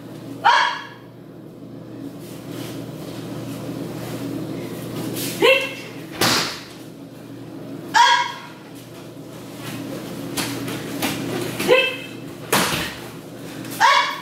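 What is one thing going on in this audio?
Young people shout sharply in a hall with some echo.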